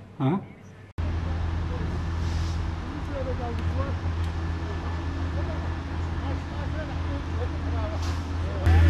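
A heavy truck engine idles with a low, steady hum.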